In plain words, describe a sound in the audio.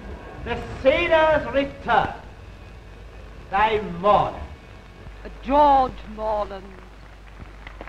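A man sings with feeling from a stage.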